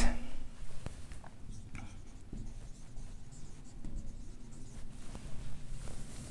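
A marker squeaks softly on a whiteboard.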